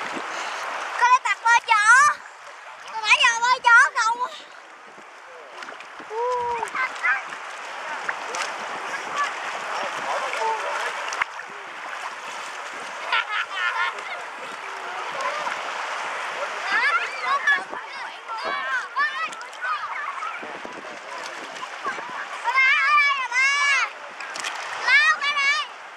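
A young boy laughs and squeals close by.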